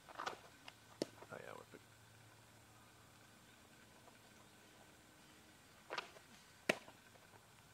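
A baseball smacks sharply into a catcher's mitt.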